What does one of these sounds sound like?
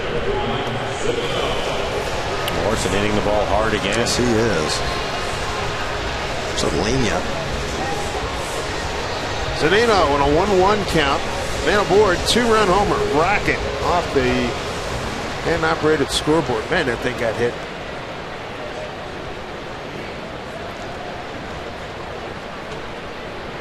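A large crowd murmurs in a stadium outdoors.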